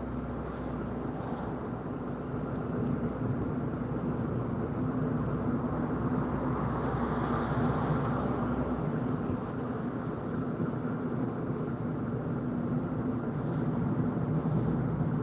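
A car engine hums steadily with tyres rolling on the road, heard from inside the car.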